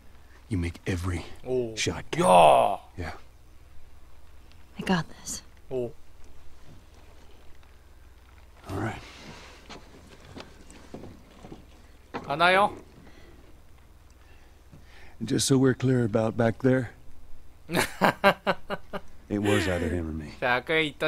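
A man speaks quietly and gravely, close by.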